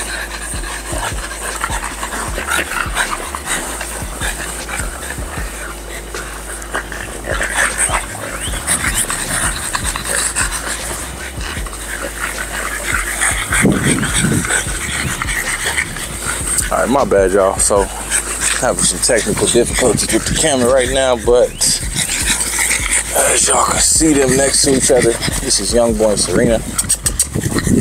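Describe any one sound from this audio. Small dogs snort and pant as they wrestle.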